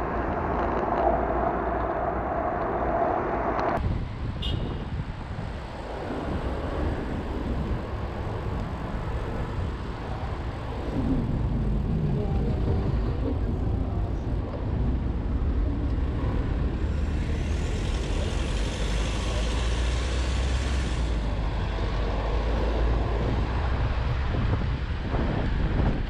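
Wind rushes past a microphone on a moving bicycle.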